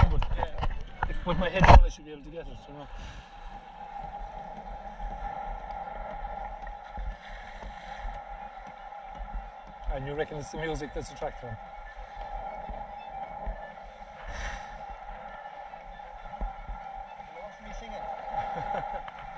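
Water splashes and laps against a sailboat's hull.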